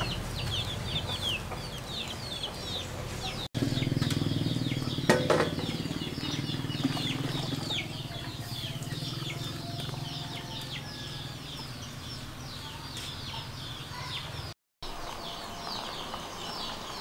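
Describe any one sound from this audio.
A wood fire crackles under a boiling pot.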